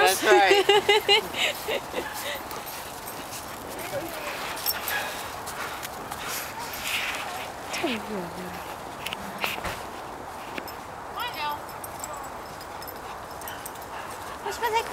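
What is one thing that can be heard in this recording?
Dogs bark and yip excitedly outdoors.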